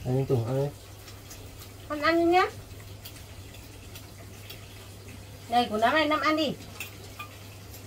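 An adult speaks to a baby close by in a high, coaxing voice.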